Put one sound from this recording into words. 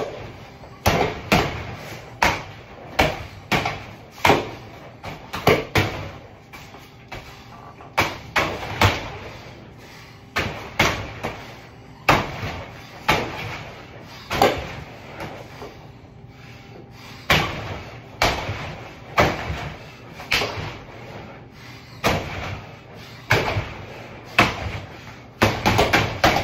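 Gloved punches thud into a heavy punching bag in quick bursts.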